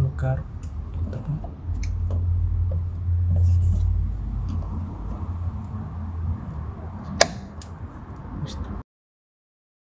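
A plastic cap clicks and rattles.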